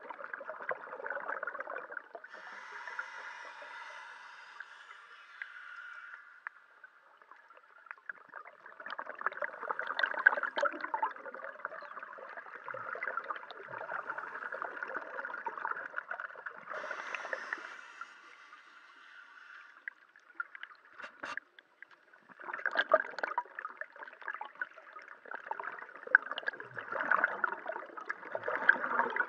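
Muffled water sloshes and bubbles close by.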